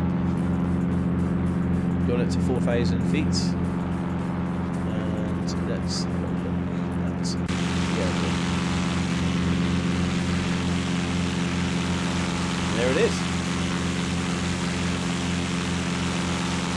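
A light propeller plane's engine drones steadily.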